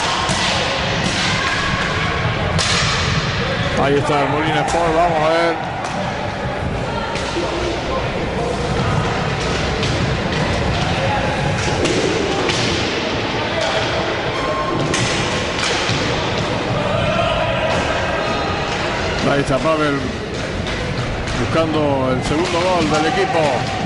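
Hockey sticks clack against a ball.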